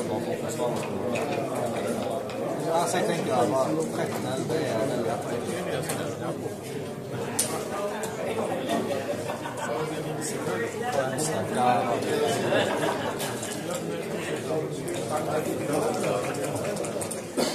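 Game pieces click as they are moved on a board.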